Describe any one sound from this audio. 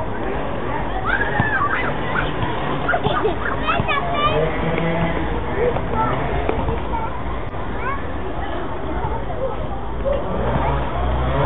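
A toddler babbles happily close by.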